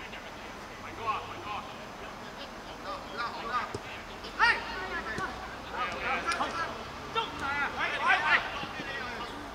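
Men shout to each other across an open field.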